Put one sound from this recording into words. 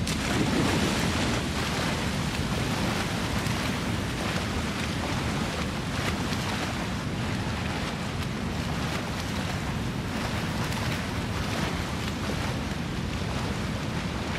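A person swims, splashing steadily through water.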